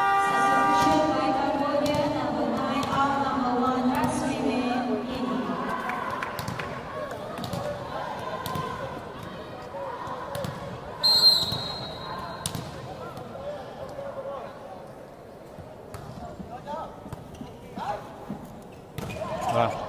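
A crowd cheers and chatters in a large echoing hall.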